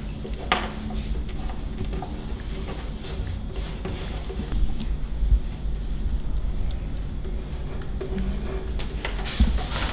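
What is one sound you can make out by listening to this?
A pen scratches across paper as it writes.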